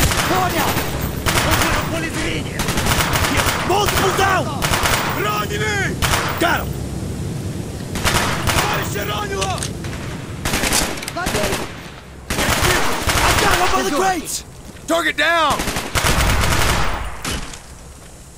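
Rapid gunfire bursts sound out in short, loud volleys.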